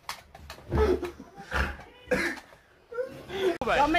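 A man laughs nearby.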